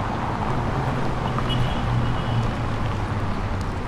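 A car drives past close by over cobblestones.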